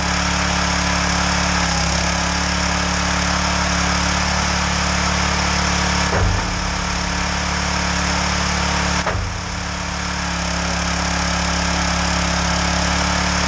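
A petrol engine runs steadily nearby.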